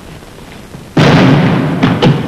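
A man pounds on a door.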